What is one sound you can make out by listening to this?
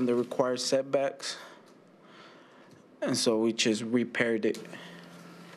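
A man speaks into a microphone in short phrases, with pauses.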